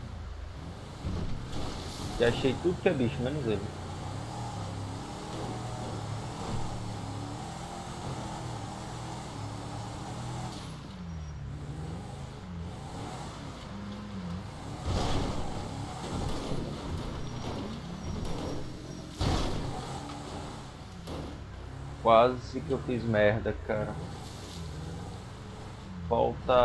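An off-road engine rumbles and revs steadily.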